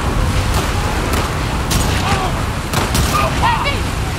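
Water splashes as a man wades through it.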